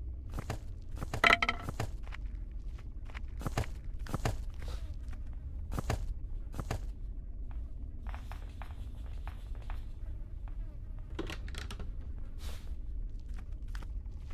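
Footsteps thud on a hard floor at an even walking pace.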